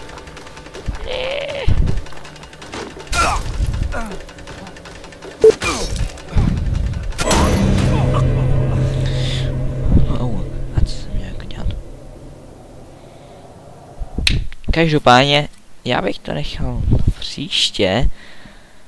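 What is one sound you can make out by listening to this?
A young man speaks and exclaims with animation, close to a microphone.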